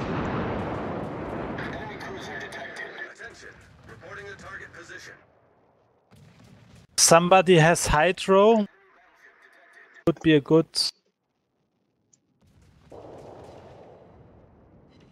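Heavy naval guns boom and rumble.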